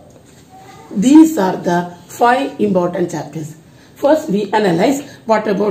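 A middle-aged woman speaks clearly and calmly, close by.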